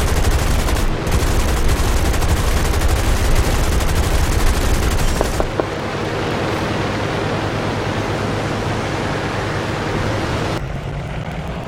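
Flak shells burst loudly around a plane.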